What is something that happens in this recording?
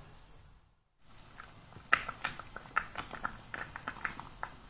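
Water bubbles and simmers in a pot.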